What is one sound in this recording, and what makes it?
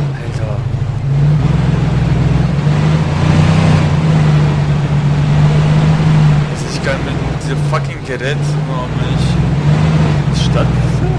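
A pickup truck's engine hums steadily as it drives along a road.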